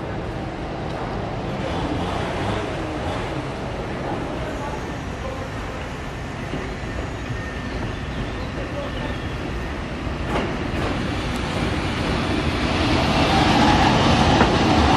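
An electric locomotive rumbles slowly into a station, growing louder as it nears.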